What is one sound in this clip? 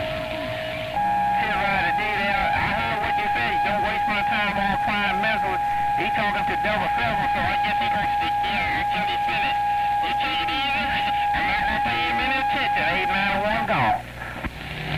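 A radio signal warbles and chirps over a steady whine.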